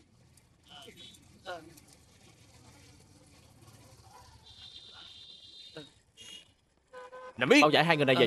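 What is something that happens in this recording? Motorbike engines hum as riders pull up.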